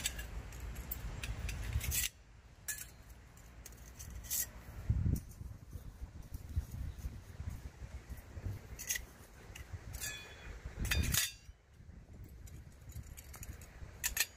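Metal stove parts clink and scrape together.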